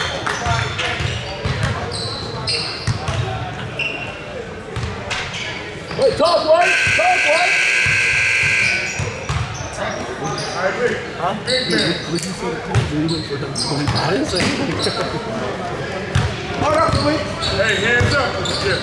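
A crowd of spectators talks and cheers.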